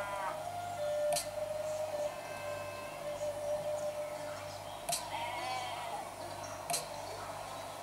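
A finger taps on a tablet's touchscreen.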